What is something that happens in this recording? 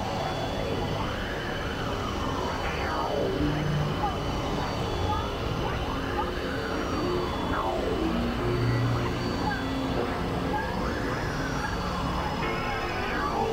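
Electronic synthesizer tones play with sweeping pitch glides.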